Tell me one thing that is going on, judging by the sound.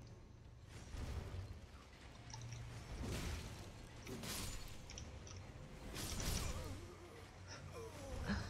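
Sword blades clash and strike in a fight.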